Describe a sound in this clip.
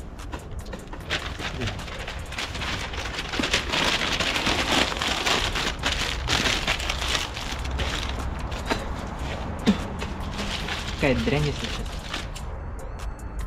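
Paper rustles and crumples close by.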